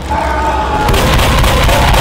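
A burst of fire roars.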